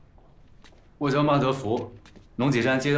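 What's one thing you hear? A young man answers calmly.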